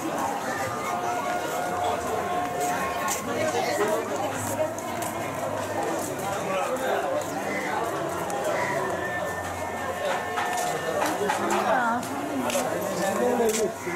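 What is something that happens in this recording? Men talk nearby in lively voices.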